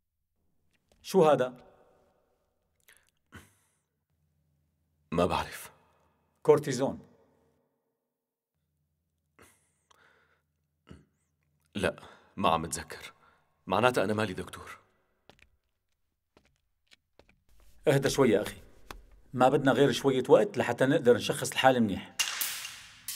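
A middle-aged man speaks calmly and seriously, close by.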